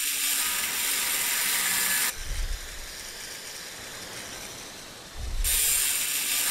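An angle grinder whines and hisses loudly as it grinds metal, stopping and starting again.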